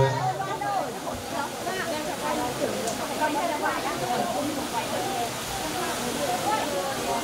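A crowd of women chatter in the background.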